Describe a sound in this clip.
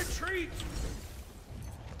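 Ice cracks and shatters with a loud crash.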